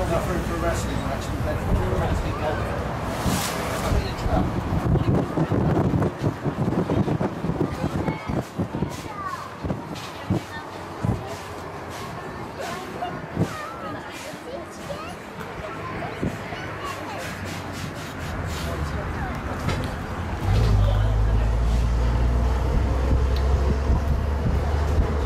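An old bus engine rumbles and whines as the bus drives along.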